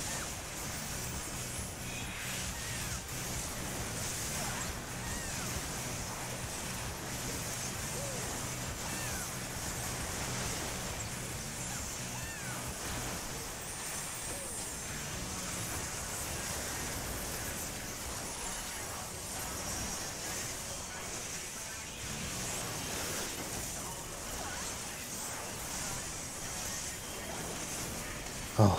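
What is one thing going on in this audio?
Magical spell effects whoosh and crackle in a battle.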